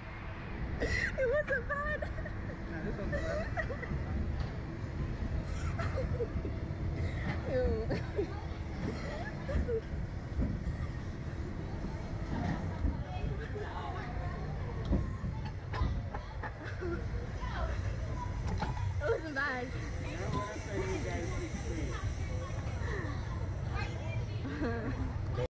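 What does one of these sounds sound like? Two young women talk and laugh excitedly close by.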